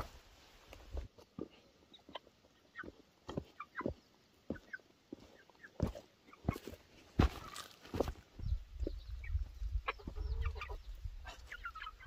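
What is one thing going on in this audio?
Rubber boots tread on soft mud and stone steps.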